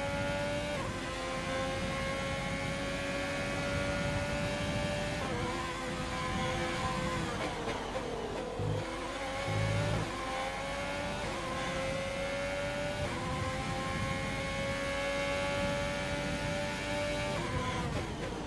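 A racing car engine screams at high revs, dropping in pitch with each gear change and braking, then climbing again.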